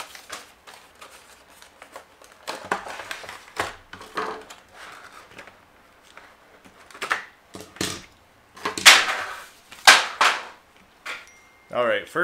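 A man unwraps plastic packaging, which crinkles and rustles.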